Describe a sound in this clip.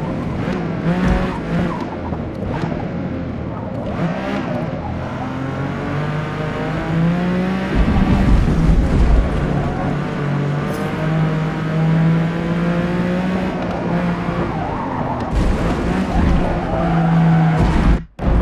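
A racing car engine revs high and drops as the gears shift.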